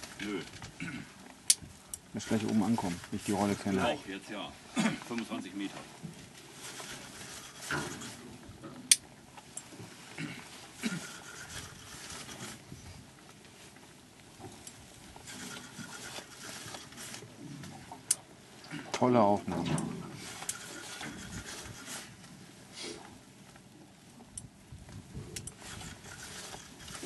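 A fishing reel clicks as it is cranked.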